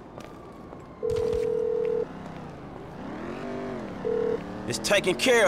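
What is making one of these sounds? A phone line rings in an earpiece.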